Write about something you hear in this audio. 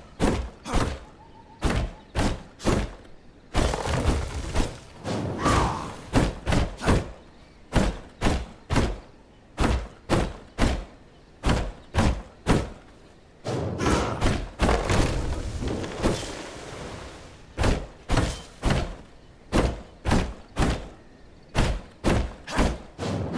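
An axe chops into wood with steady, repeated blows.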